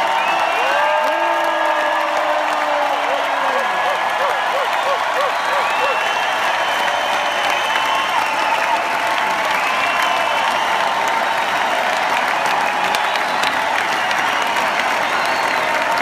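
A large crowd cheers loudly in a vast, echoing arena.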